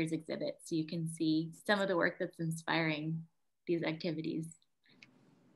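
A young woman talks cheerfully over an online call.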